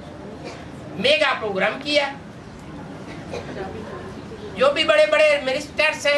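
An elderly man speaks calmly into a clip-on microphone, close by.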